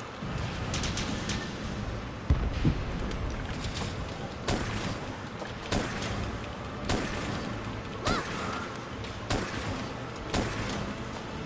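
Sharp gunshots crack one after another.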